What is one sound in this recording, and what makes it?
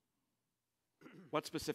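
A middle-aged man begins speaking into a microphone.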